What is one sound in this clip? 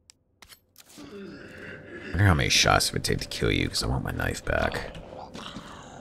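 A zombie groans and growls.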